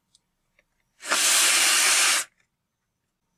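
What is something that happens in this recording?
A cartoon cloud blows a loud gust of wind.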